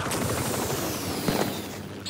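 Rocket boots roar with a jet of flame.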